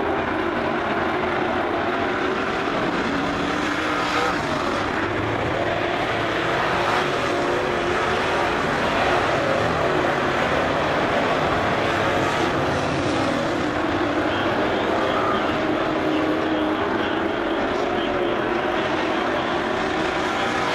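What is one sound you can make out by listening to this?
Race car engines roar loudly and steadily.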